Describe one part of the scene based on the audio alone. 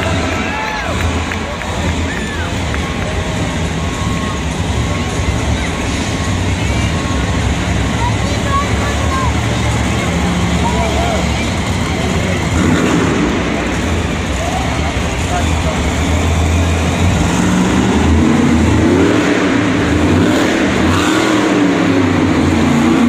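Monster truck engines rumble and roar loudly in a large echoing arena.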